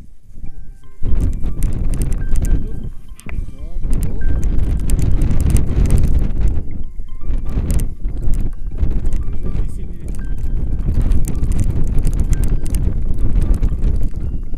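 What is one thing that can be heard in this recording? Strong wind roars and buffets against a microphone outdoors.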